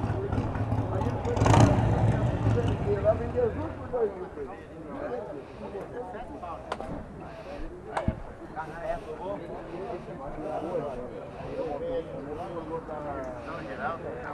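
Several men chat nearby outdoors, their voices overlapping.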